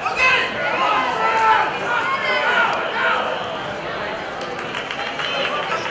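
A crowd in a large echoing gym shouts and cheers.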